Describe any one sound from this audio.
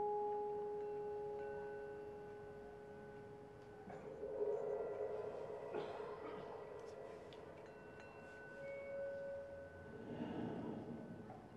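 Vibraphone notes ring out and slowly fade.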